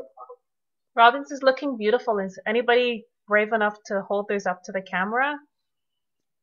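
A woman speaks cheerfully over an online call.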